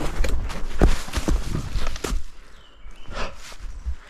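A scooter clatters as it drops onto leaves.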